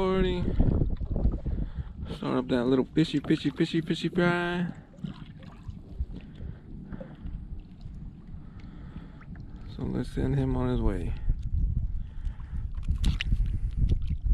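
Water splashes as a fish thrashes beside a boat.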